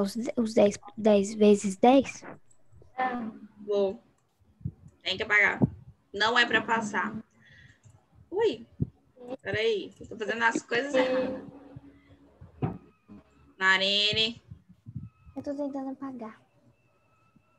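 A woman explains calmly over an online call.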